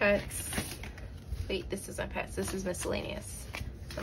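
Banknotes rustle as they are counted by hand.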